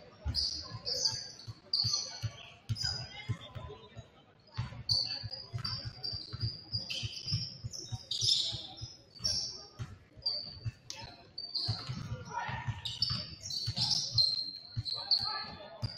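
A basketball bounces repeatedly on the court.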